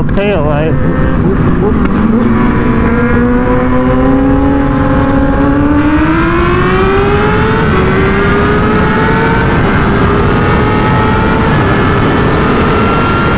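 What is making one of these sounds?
A motorcycle engine revs and climbs in pitch, dropping at each gear change.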